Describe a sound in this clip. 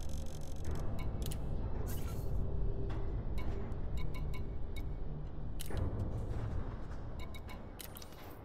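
Short electronic clicks and beeps sound as menu options are selected.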